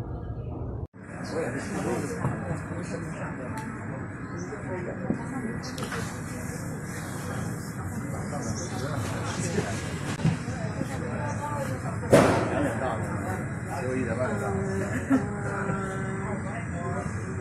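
Men and women chat and murmur nearby in a large room.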